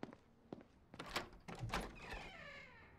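A fist knocks on a wooden door.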